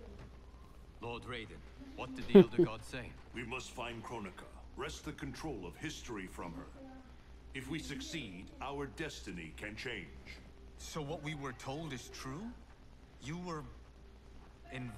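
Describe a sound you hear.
A young man asks questions with concern.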